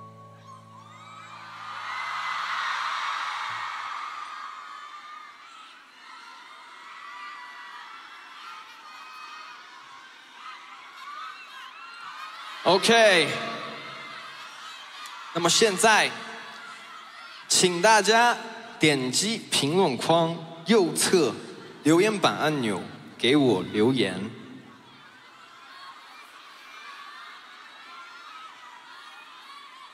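A large crowd cheers and screams in a big arena.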